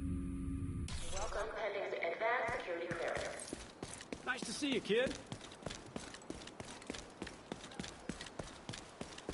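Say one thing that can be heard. Footsteps walk steadily over pavement.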